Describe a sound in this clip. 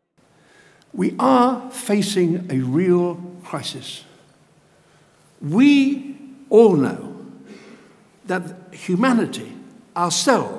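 An elderly man speaks with animation into a microphone in a large echoing hall.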